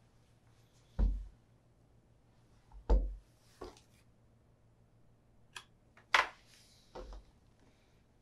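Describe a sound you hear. A shoe thuds down onto a wooden table.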